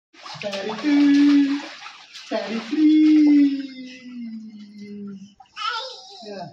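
Water splashes as small feet kick in a shallow pool.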